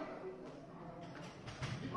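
A loaded barbell clanks as it is set down on its rack.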